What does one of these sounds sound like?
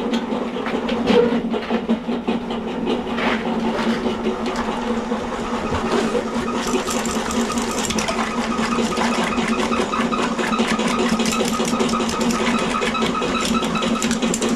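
A metal drain cable rattles and scrapes against a pipe.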